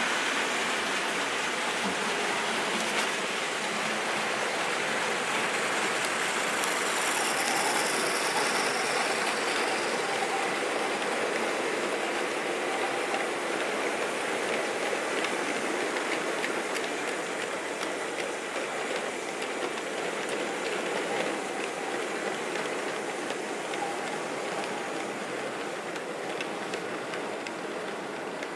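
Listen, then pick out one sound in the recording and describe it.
A model train rumbles and clatters steadily along the track.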